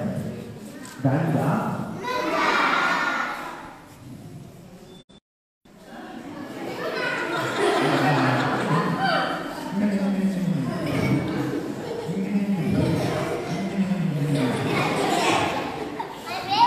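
A man speaks with animation to children in a large echoing hall.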